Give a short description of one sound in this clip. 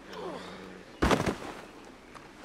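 A heavy body thuds onto the ground.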